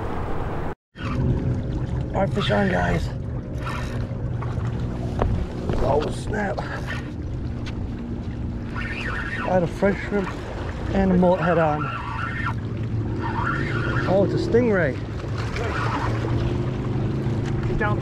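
Small waves splash against rocks.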